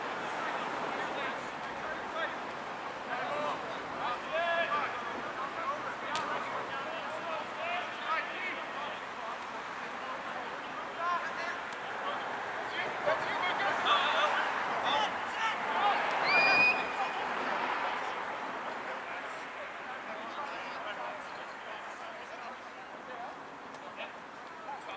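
Young men and women shout and call out to each other outdoors.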